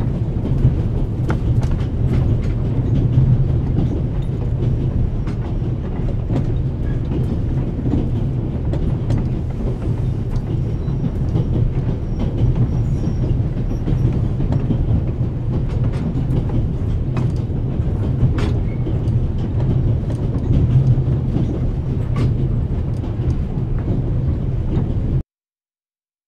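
A train rumbles steadily along its tracks.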